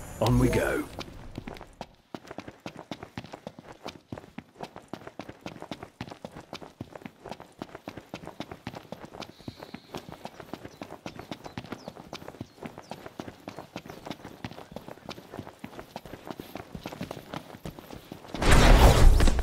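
Quick footsteps patter on dry grass and dirt.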